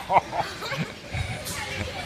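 A young boy laughs close by.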